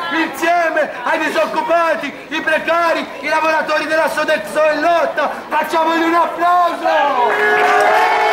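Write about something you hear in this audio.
A crowd of young men and women chants loudly in unison outdoors.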